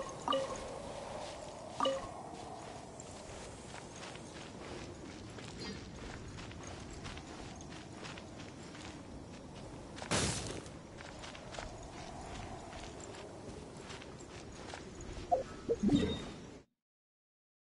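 Quick footsteps run over grass.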